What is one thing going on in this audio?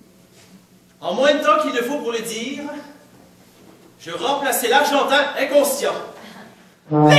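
A young man speaks loudly and with feeling in an echoing hall.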